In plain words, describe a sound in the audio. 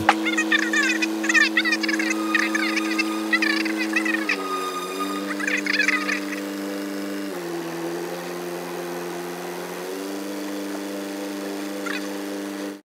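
A boat engine hums steadily, shifting pitch a few times.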